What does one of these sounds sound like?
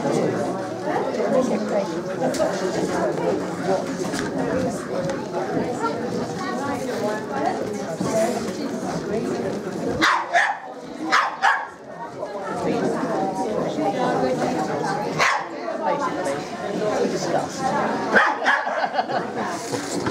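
A crowd of men and women chat in a large echoing hall.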